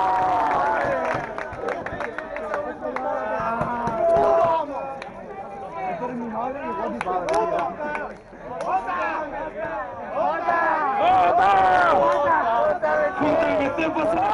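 Young men talk and shout close by in a noisy crowd.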